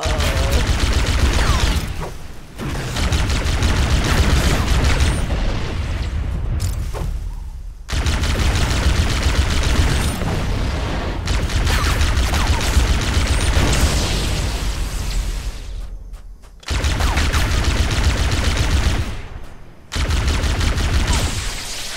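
A rapid-fire energy weapon shoots in quick bursts.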